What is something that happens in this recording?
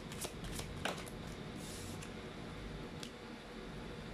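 A card is laid down on a wooden table with a light tap.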